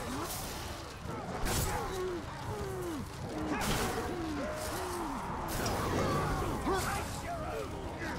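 Swords clash and strike in quick bursts.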